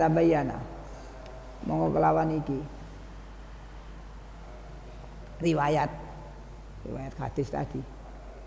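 An elderly man speaks slowly into a microphone, in short phrases with pauses.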